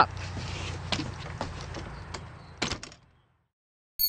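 A wooden door rattles and knocks as it is pulled open.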